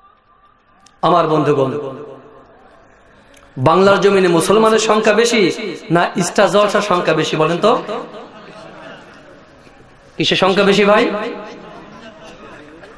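A man chants loudly and melodiously into a microphone, with an echo over a loudspeaker.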